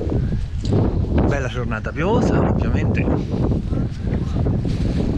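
A middle-aged man speaks briefly, close by.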